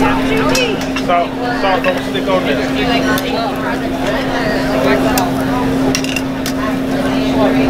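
Plates and metal tongs clink.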